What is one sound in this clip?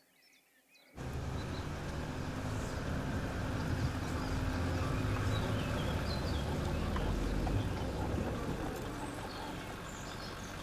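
Wind and road noise rush past an open car.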